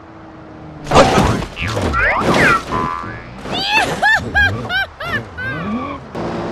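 A car crashes and scrapes over rocks.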